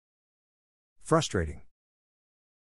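A man speaks a word into a microphone.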